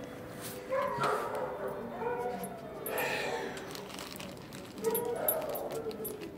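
A dog's collar tags jingle as the dog moves about.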